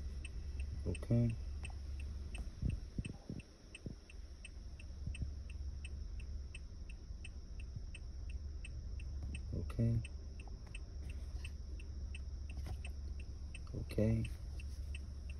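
An electronic device beeps a few times.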